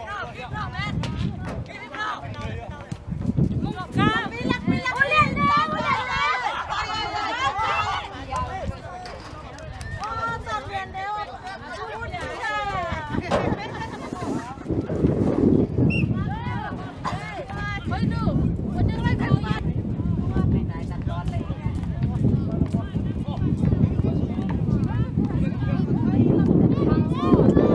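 Young players shout and call to each other outdoors in the distance.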